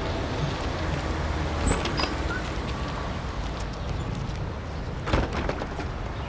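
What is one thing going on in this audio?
A wooden door opens and shuts.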